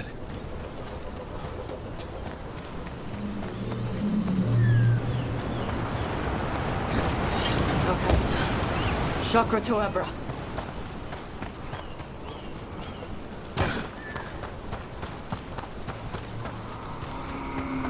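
Footsteps crunch through undergrowth at a steady walking pace.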